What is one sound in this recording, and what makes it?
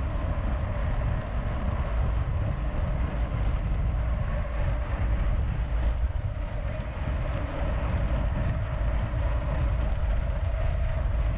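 A bicycle chain whirs steadily as the pedals turn.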